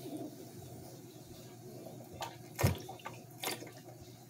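A woman gulps water from a large plastic bottle.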